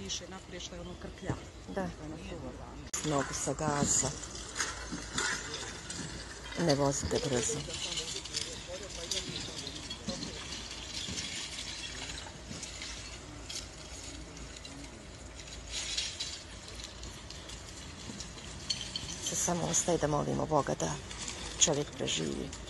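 Men talk nearby in agitated voices outdoors.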